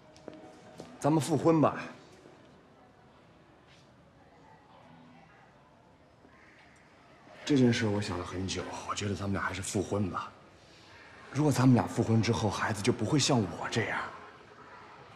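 A young man speaks calmly and earnestly, close by.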